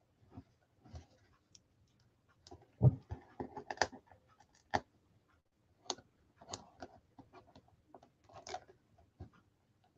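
Fingers rub and rustle paper.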